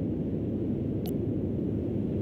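A short electronic click sounds as a menu selection changes.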